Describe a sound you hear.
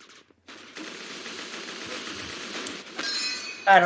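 A rapid burst of gunfire rings out.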